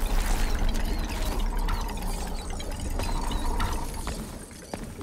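A burst of sparkling magic crackles and fades.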